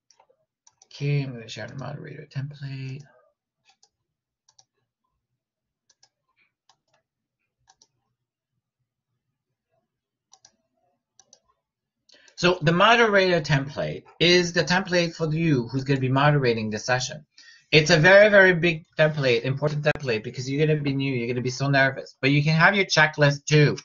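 A middle-aged man speaks calmly and close up, as if into a computer microphone.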